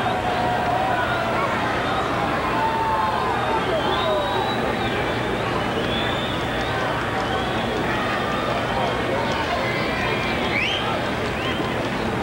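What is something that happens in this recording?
Fans in a crowd whistle now and then.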